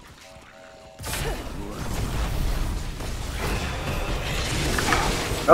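Fantasy battle sounds clash and blast loudly.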